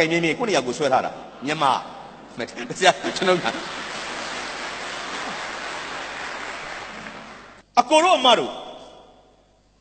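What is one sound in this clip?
A man speaks with animation through a microphone in a large hall.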